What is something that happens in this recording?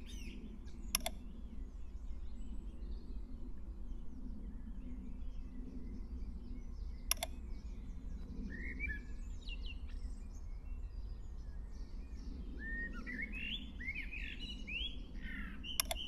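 A game menu gives a short, sharp click a few times.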